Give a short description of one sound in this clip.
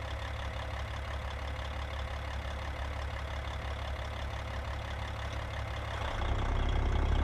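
A truck's diesel engine idles with a low steady rumble.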